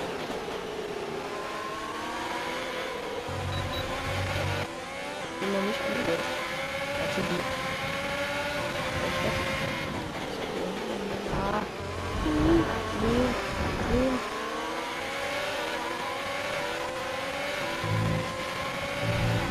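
A racing car engine screams, rising and falling in pitch as it shifts gears.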